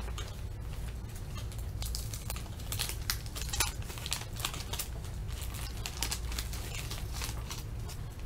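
Foil wrapping crinkles as hands tear open a pack.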